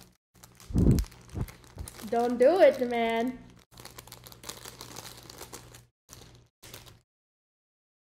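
Small plastic pieces rattle and clatter.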